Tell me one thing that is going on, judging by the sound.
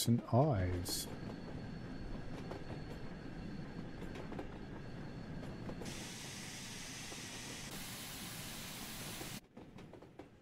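A steam train rumbles along its tracks.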